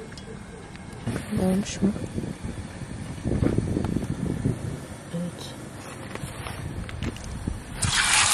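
Oil sizzles faintly in a hot pan.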